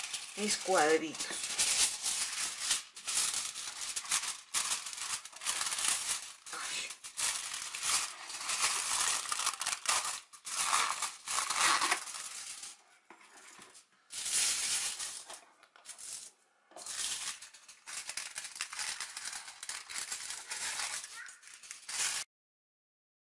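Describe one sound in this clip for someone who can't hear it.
Aluminium foil crinkles and rustles as it is handled.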